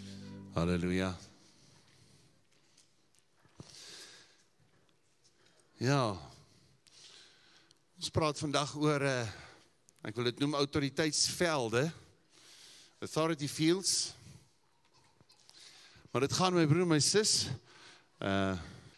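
An elderly man speaks with feeling into a microphone, heard through a loudspeaker.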